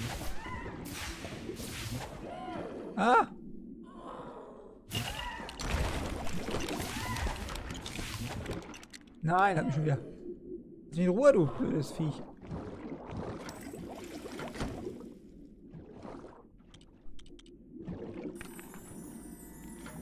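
Bubbly underwater game sound effects pop and swoosh.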